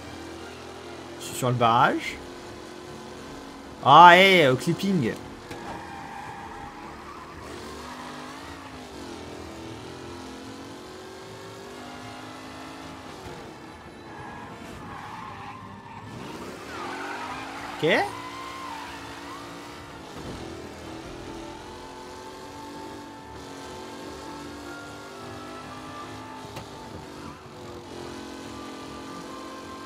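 An old racing car's engine hums steadily.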